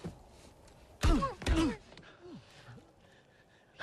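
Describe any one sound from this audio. A man speaks in a strained, emotional voice close by.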